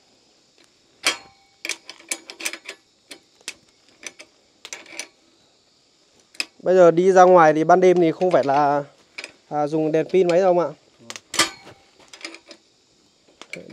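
Metal parts clink and tap as a fitting is tightened on a metal pole.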